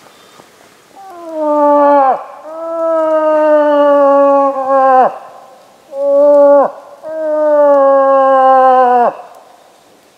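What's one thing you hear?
A man blows a long, wailing animal call through a horn.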